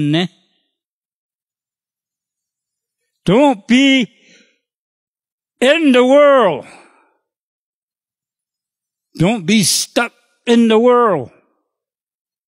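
An elderly man preaches with passion through a microphone, in short bursts with pauses.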